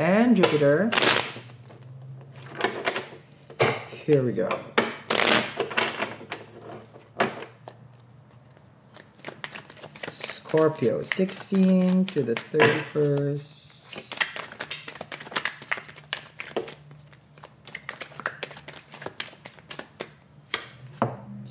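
Cards riffle and snap as a deck is shuffled.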